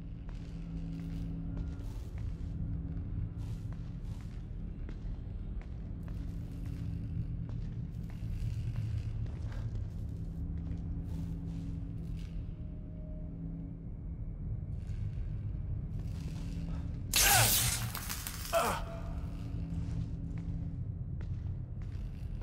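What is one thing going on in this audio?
Footsteps shuffle softly on a hard floor.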